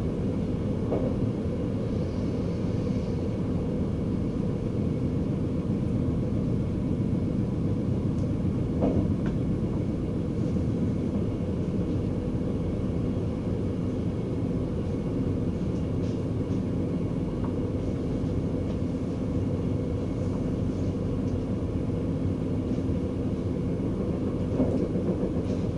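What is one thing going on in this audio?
Train wheels clack over rail joints now and then.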